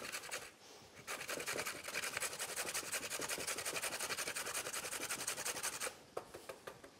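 A carrot rasps steadily against a metal grater.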